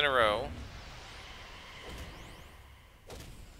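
A magic spell shimmers and hums.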